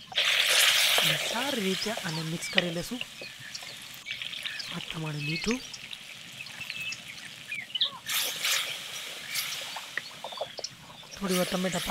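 A wooden spoon stirs and scrapes in a pot.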